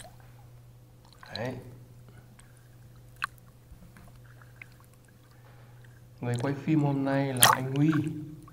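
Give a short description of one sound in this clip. Small waves lap and splash close by.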